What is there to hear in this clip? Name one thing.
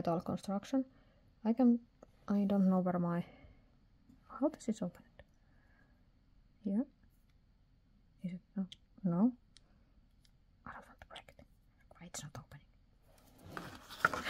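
A pen is turned over in the hands with faint clicks.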